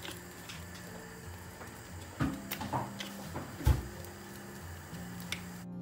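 Batter sizzles softly in hot oil.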